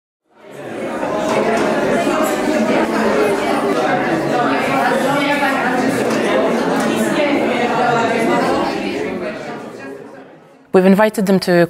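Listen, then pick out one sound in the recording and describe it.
A crowd of people murmurs and chatters in a large echoing room.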